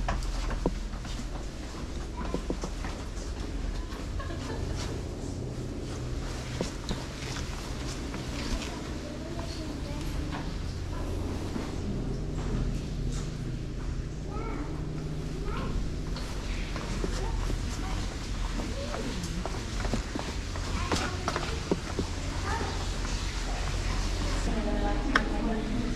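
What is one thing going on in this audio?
Footsteps thud on a metal walkway.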